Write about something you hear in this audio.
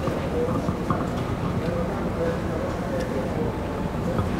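Footsteps pass close by on pavement.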